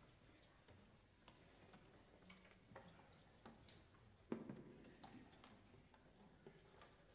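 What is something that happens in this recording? An audience shifts and rustles quietly in a large room.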